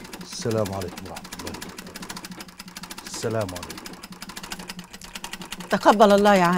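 A sewing machine rattles steadily.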